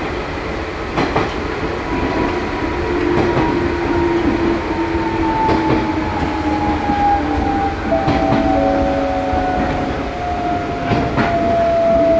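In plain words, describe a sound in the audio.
Wheels clack over rail joints now and then.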